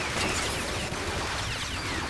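A sci-fi energy weapon fires a blast.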